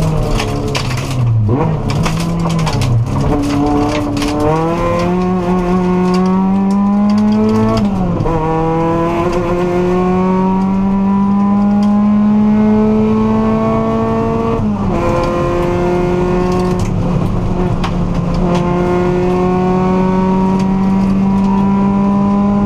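Gravel pings and rattles against the underside of a rally car.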